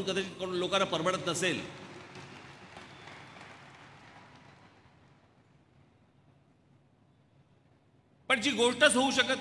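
A middle-aged man speaks forcefully through a microphone and loudspeakers, echoing in a large space.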